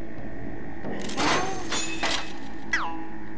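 A grappling hook shoots out on a rattling chain.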